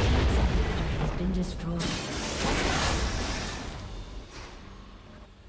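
Fantasy game spell effects and combat hits crackle and whoosh, then fade.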